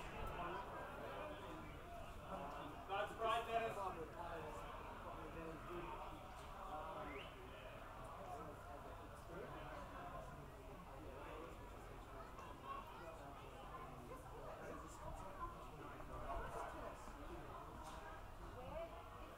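Men call out and shout to each other outdoors in the open.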